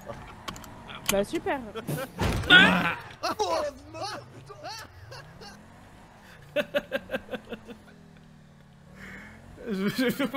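A man talks with animation and laughs, close to a microphone.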